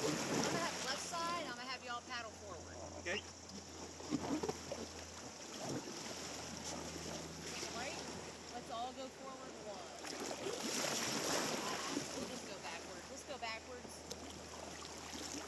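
Water ripples and gurgles over stones.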